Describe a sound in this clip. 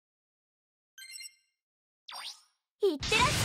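Short electronic beeps chime.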